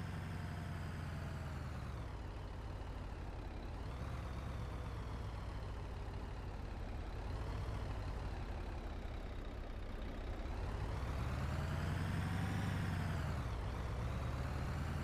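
A bus engine hums steadily, slowing down and then revving up again.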